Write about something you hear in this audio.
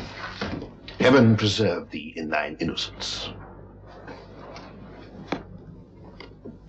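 A man speaks in a deep, commanding voice.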